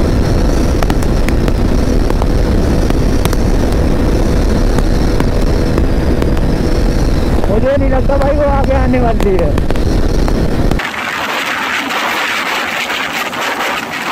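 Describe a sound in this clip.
Wind roars loudly past a fast-moving motorcycle.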